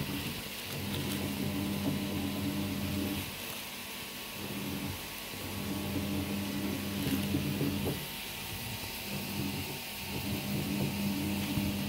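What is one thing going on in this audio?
Paper wrapping crinkles as a hand moves it.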